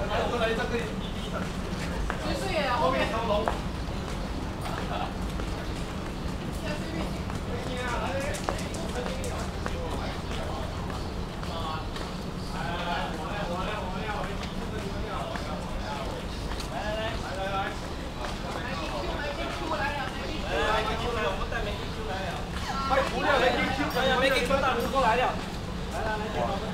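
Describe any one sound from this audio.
Men and women talk casually nearby outdoors.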